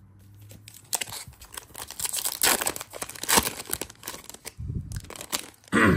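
A plastic wrapper crinkles and tears open.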